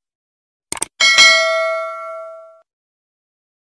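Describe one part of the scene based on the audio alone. A small bell chimes brightly and rings out.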